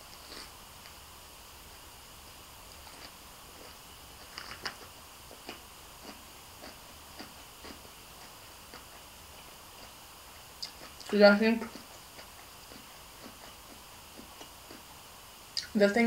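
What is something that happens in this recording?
A young woman chews food softly.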